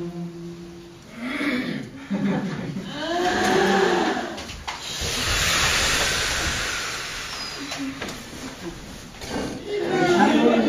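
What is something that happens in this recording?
A crowd of men and women chatter and laugh loudly.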